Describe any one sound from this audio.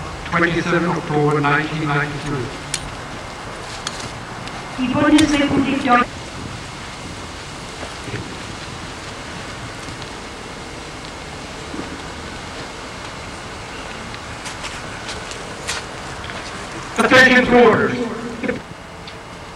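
A man shouts loud commands outdoors.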